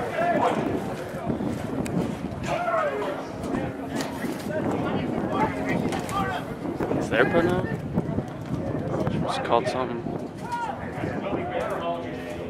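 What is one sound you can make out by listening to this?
Young women players shout and call to each other outdoors.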